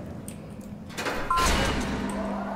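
A heavy switch clanks loudly.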